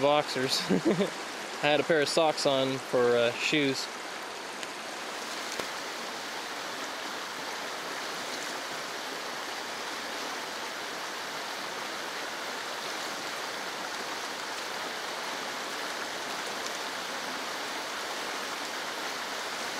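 A river rushes and splashes over rocks nearby.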